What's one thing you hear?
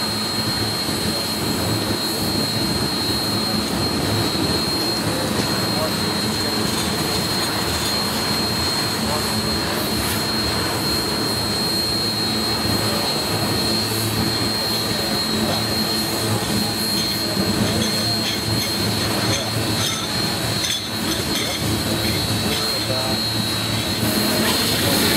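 A freight train rumbles past close by, its wheels clattering steadily over the rail joints.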